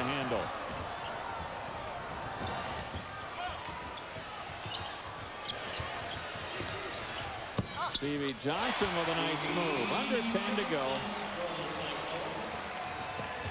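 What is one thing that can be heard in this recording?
A basketball thumps as players dribble it on the court.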